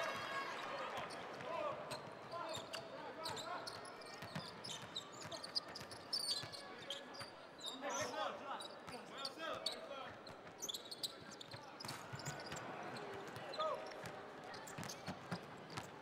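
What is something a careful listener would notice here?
A basketball is dribbled on a hardwood court.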